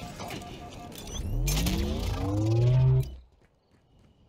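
A grenade bursts with a deep rumbling boom.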